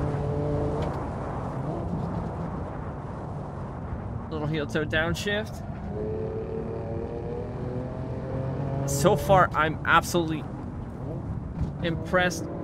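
A car engine drones and revs as the car speeds along.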